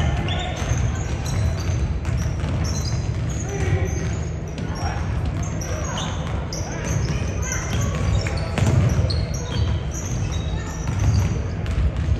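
Basketball shoes squeak sharply on a wooden court in a large echoing gym.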